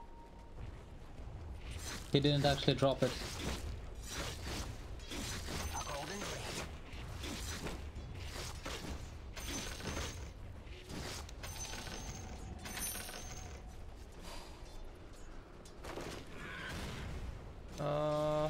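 Game sound effects clash and crackle during a fight.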